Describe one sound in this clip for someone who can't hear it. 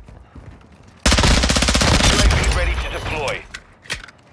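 A rifle fires a rapid, loud burst.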